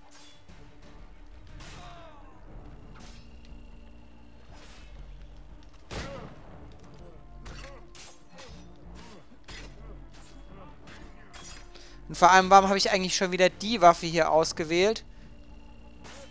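Weapons strike and thud in hand-to-hand combat.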